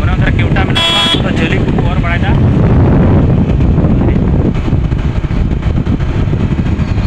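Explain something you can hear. A vehicle drives along a road with a steady low rumble.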